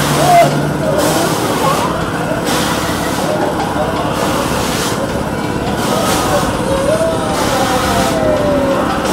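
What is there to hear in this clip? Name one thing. Children shout and chatter.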